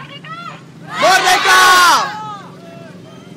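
A crowd shouts together loudly.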